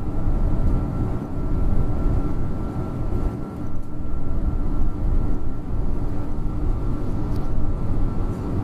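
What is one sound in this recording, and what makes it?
A heavy engine rumbles steadily inside a moving vehicle.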